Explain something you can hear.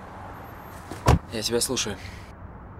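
A middle-aged man talks inside a car.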